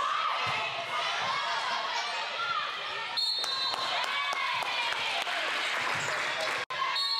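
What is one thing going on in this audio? A volleyball is struck with a sharp slap.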